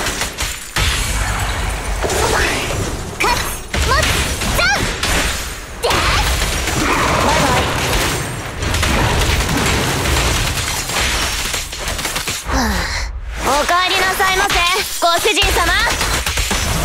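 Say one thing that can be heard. Icy blasts burst and shatter.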